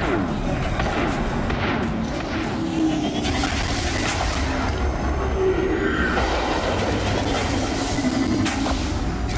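Laser beams fire with a steady buzzing hum.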